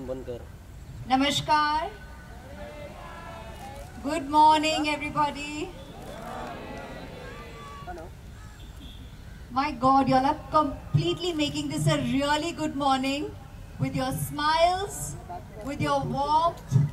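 A young woman speaks warmly into a microphone, heard through loudspeakers in the open air.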